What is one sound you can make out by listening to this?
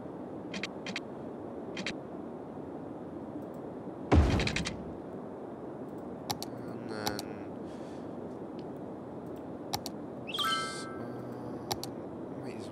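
Short soft clicks of a game menu sound now and then.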